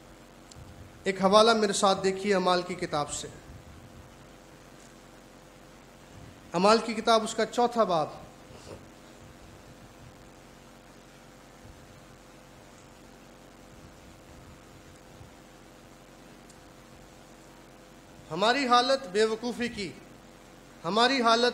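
A man speaks into a microphone in short bursts with long pauses.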